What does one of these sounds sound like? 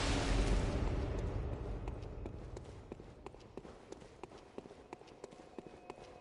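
Footsteps run quickly over a stone floor, echoing slightly.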